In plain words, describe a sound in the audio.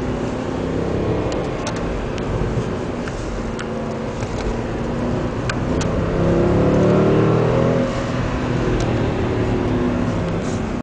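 A car engine hums and revs from inside the cabin, rising in pitch around the middle.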